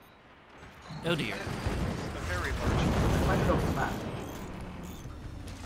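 Game weapons fire in a rapid barrage of blasts.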